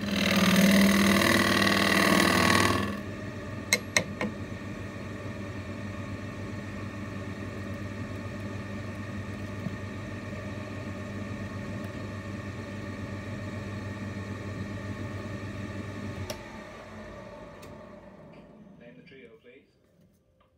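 A lathe motor hums steadily, then winds down.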